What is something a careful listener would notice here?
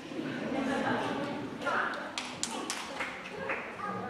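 A man claps his hands a few times.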